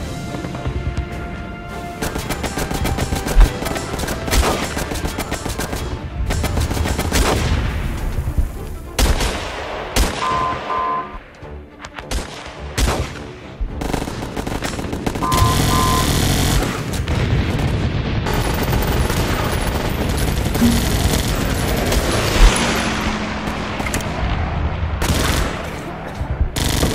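Guns fire rapidly in a game battle.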